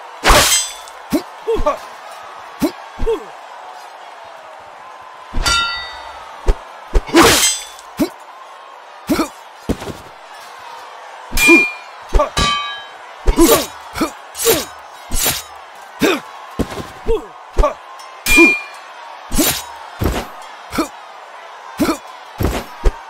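Swords clash and clang with sharp metallic rings.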